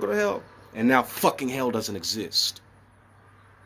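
A man speaks close up, calmly and with emphasis.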